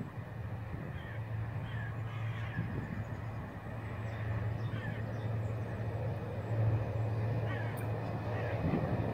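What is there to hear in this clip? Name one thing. A train engine hums in the distance as it approaches.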